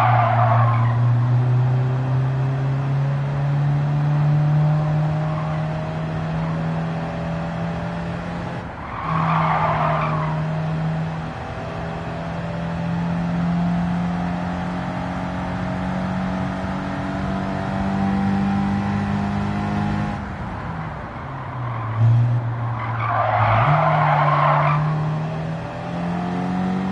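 A car engine drones steadily, shifting gears as it revs up and down.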